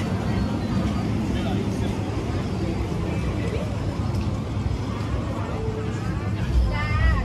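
Men and women chatter nearby in a busy outdoor crowd.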